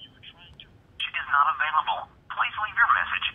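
A voice talks loudly through a phone loudspeaker.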